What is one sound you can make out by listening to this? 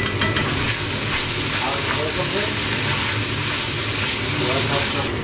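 A wooden spoon stirs a thick stew in a metal pot.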